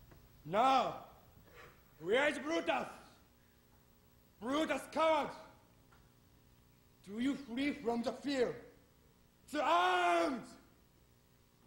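A young man shouts out loud, declaiming in a large echoing hall.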